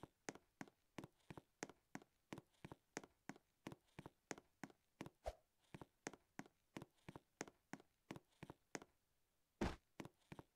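Quick, light footsteps patter steadily on the ground.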